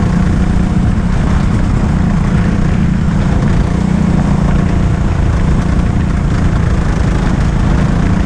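A go-kart engine buzzes loudly and steadily up close.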